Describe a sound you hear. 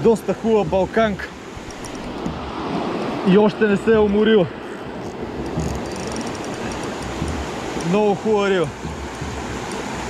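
Water rushes and churns steadily close by.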